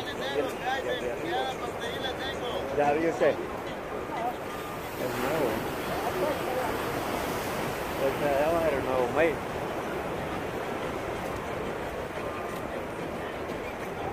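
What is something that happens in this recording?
Waves crash and wash against the shore nearby.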